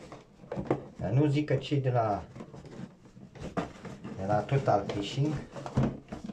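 A cardboard box flap rustles and scrapes.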